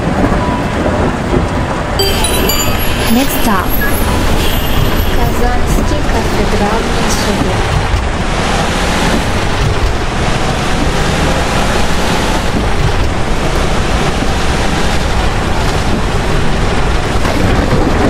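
A bus engine rumbles steadily as the bus drives.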